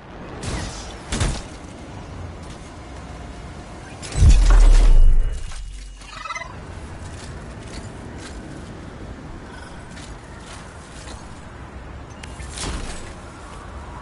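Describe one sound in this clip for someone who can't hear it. Video game sound effects thud and boom.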